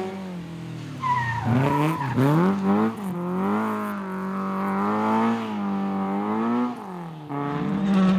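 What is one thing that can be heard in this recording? A second rally car engine revs hard and roars.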